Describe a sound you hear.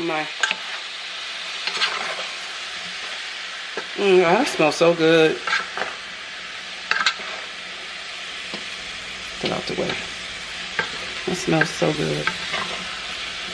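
A wooden spoon scrapes and stirs food in a pan.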